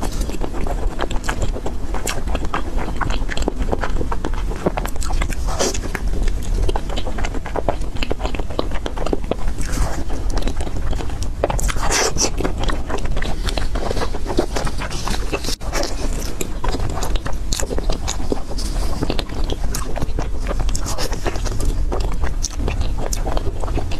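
Soft dough squishes and tears between fingers.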